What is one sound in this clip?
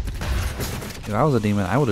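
A monster snarls and roars up close.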